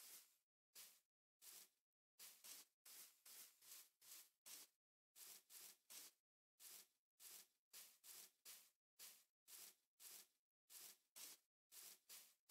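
Footsteps crunch quickly over grass, in a steady running rhythm.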